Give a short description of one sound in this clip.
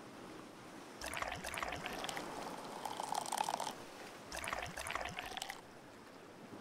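Beer pours from a tap with a soft fizzing hiss.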